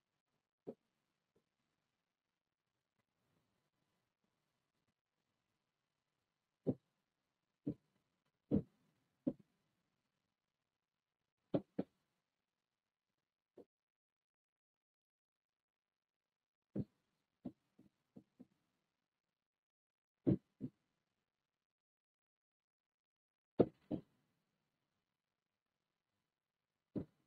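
A pen taps and knocks against a board.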